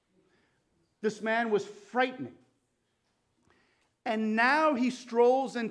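A man speaks calmly and clearly into a microphone, with pauses.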